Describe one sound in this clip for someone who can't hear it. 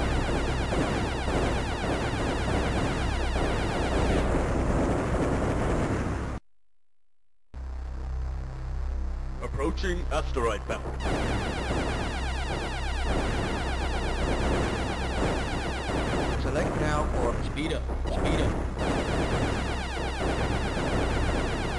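Game music plays with a steady driving beat.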